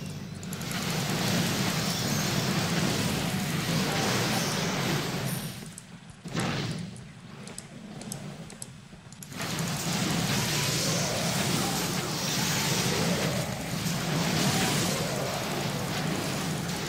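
Weapons clash and spells burst in a game battle.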